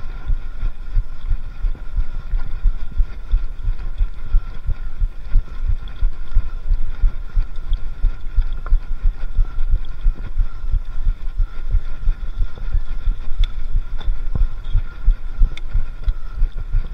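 Bicycle tyres roll over a bumpy dirt trail.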